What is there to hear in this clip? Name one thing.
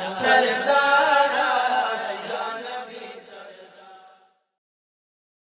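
A middle-aged man sings close to a microphone, with long held notes, then falls silent.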